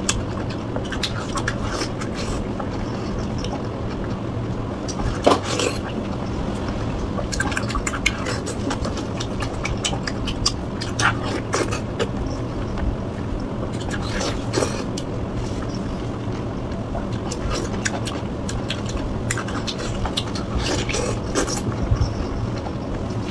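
A woman chews crunchy food loudly and wetly, close up.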